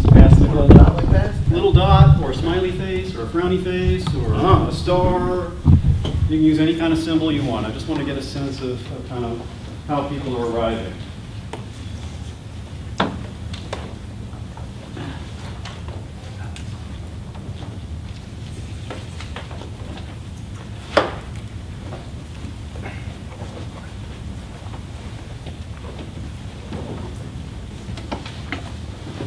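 A group of people chat and murmur in a room.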